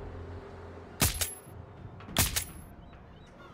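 A rifle fires two loud, sharp shots.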